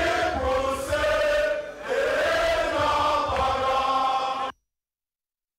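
A crowd of men and women sings loudly together.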